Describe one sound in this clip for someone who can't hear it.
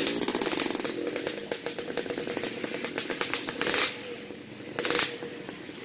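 Two-stroke motorcycles ride off down a road.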